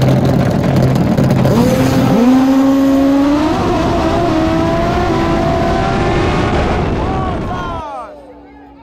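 Racing motorcycle engines roar loudly and rise in pitch as they launch.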